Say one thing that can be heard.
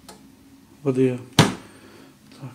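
A plastic lid snaps shut with a sharp clack.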